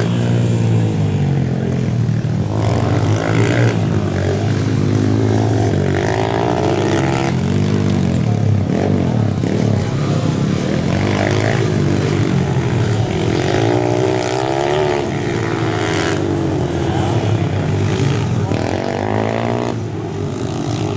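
Dirt bike engines whine and rev loudly nearby, rising and falling in pitch.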